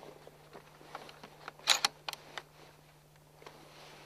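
A rifle bolt clicks as it is worked.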